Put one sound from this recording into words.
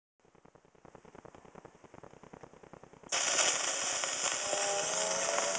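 A spinning gramophone record clicks in a quick, steady rhythm.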